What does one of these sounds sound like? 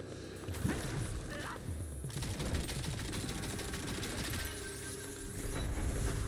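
Gunshots boom in quick bursts.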